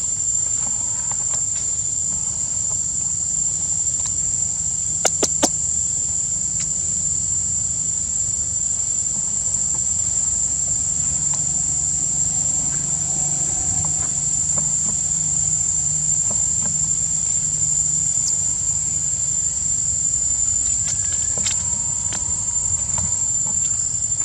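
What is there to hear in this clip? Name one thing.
Monkeys scamper across stone.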